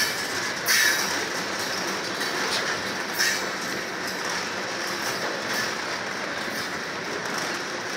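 Wheels clack over rail joints in an uneven rhythm.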